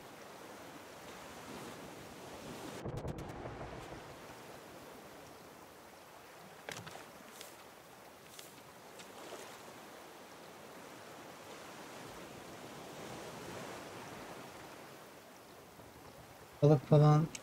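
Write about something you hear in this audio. Ocean waves wash gently and steadily.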